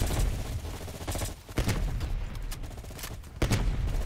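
A rifle magazine clicks into place with a metallic snap.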